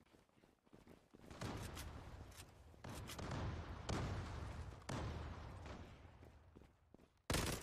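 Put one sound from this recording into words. Footsteps scuff quickly on stone paving.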